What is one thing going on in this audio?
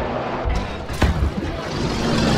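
A heavy gun fires with a loud boom.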